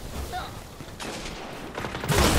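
Gunfire cracks out in bursts.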